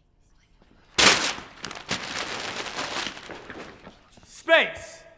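Paper signs rustle and crinkle.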